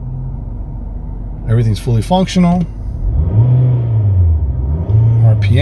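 A car engine idles with a low, steady hum.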